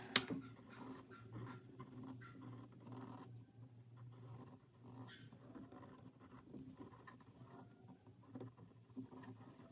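A felt-tip pen scratches softly across paper.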